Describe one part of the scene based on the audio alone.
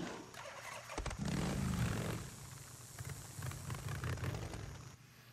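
A motorcycle engine starts and rumbles steadily as the motorcycle rides off.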